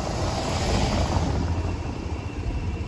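A car drives past close by over cobblestones.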